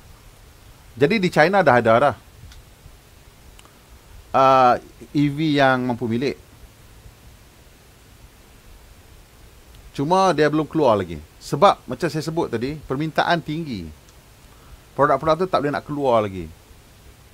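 A middle-aged man speaks calmly into a microphone in bursts with pauses.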